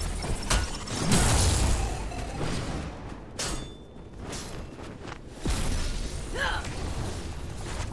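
Weapons clash and impacts thud in quick bursts.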